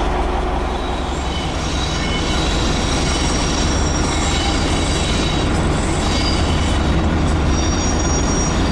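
A diesel shunting locomotive rumbles as it slowly approaches.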